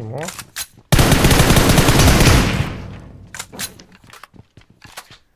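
Rapid gunfire rattles loudly, then slows to scattered single shots.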